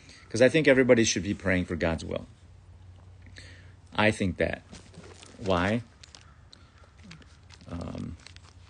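A man speaks casually and close to the microphone, in short bursts.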